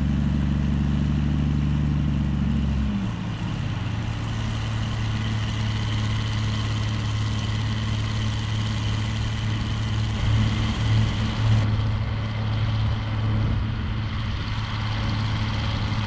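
A tractor engine hums steadily close by, changing pitch as the revs shift.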